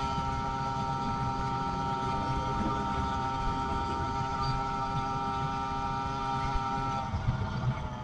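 A quad bike engine drones close ahead.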